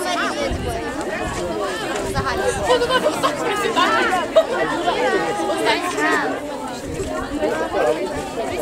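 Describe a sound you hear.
A woman talks cheerfully nearby.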